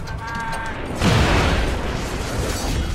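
A loud explosion booms and crackles.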